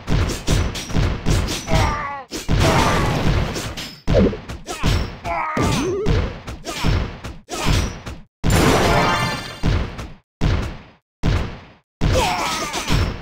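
Cartoon explosions boom and crash repeatedly.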